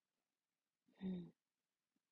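A young woman speaks softly and briefly, close to the microphone.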